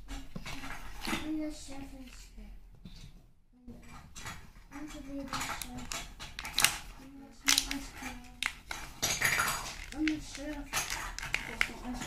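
Stiff card packaging rustles and crinkles as it is handled.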